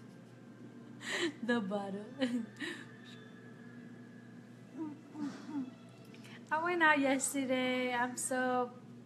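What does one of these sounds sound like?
A young woman speaks cheerfully and closely into a microphone.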